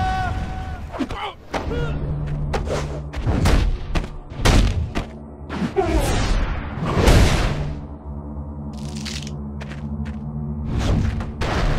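Punches and body slams land with heavy thuds.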